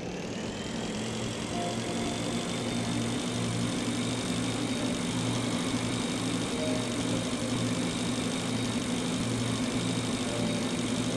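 A jetpack thrusts with a steady hiss.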